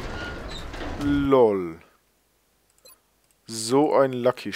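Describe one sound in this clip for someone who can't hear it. Electronic menu tones sweep as a menu opens and changes.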